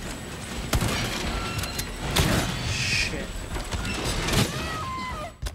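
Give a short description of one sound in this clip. Loud gunshots ring out several times.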